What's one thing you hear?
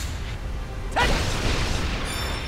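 Crystal shatters with a sharp burst.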